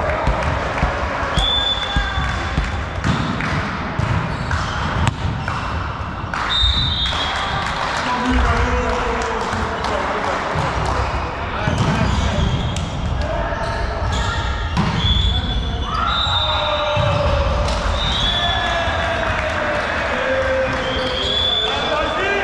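Young women call out to each other across the court.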